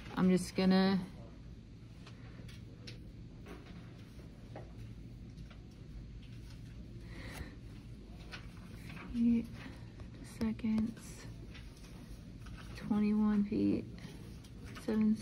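A fingertip taps and slides on a touchscreen.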